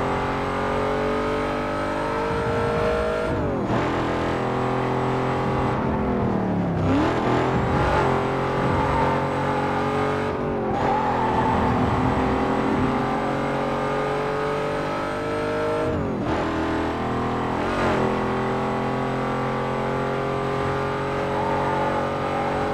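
A supercharged V8 sports car accelerates at full throttle, shifting up through the gears.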